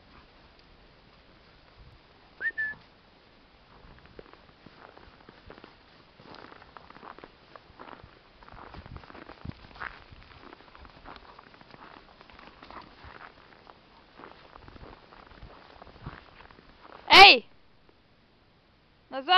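Paws crunch and scuffle in the snow.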